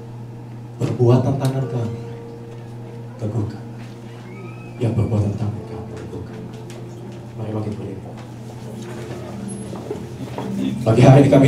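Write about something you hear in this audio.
A man speaks with animation into a microphone over loudspeakers in a reverberant room.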